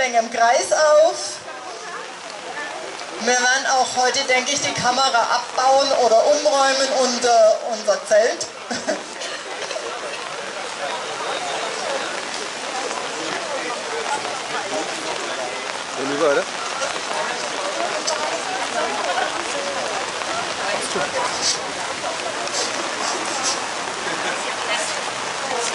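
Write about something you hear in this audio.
Rain patters steadily on umbrellas and pavement.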